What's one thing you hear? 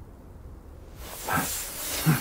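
Electricity crackles and sizzles loudly.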